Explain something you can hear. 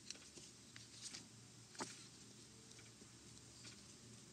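Paper rustles softly close by.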